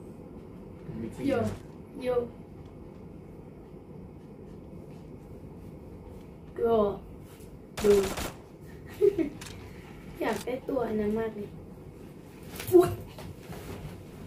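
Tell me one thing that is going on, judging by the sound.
A young girl speaks with animation, close to a microphone, in short bursts.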